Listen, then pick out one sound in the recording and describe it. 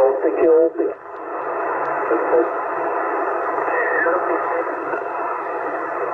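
A radio hisses with steady static.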